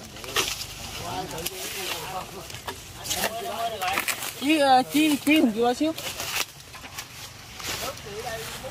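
Dry leaves and twigs rustle and crackle as a man moves through undergrowth.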